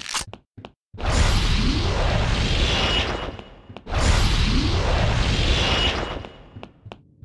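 A magical blast roars and whooshes loudly.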